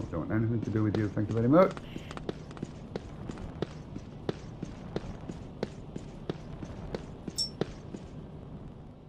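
Footsteps run quickly across a stone floor with an echo.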